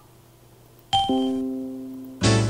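A computer notification chime rings out and fades.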